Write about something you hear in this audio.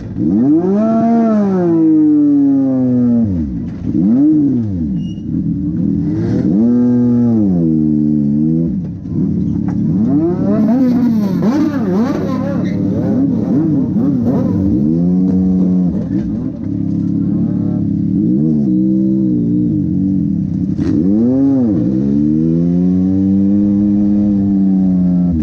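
A race car engine revs hard, rising and falling over and over, very close.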